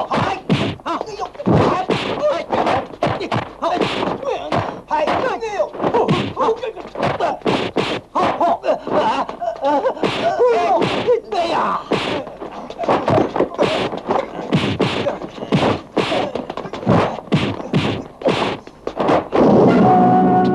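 Punches and kicks land with sharp, rapid smacks.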